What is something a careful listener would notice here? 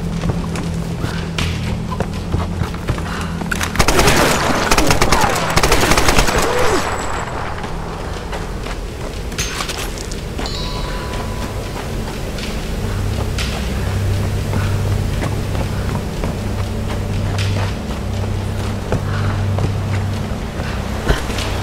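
Footsteps crunch over gravel and wooden boards.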